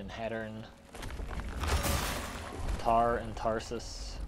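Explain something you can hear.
A sword whooshes through the air.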